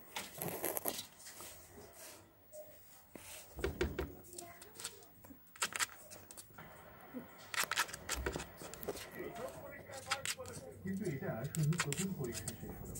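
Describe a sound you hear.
A rabbit rustles and nibbles dry straw close by.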